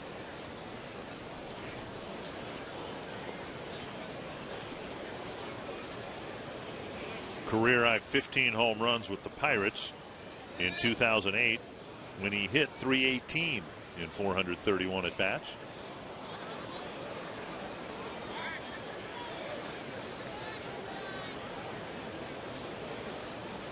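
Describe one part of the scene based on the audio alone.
A large outdoor crowd murmurs in the background.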